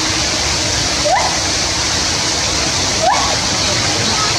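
A gibbon gives short rising whoops.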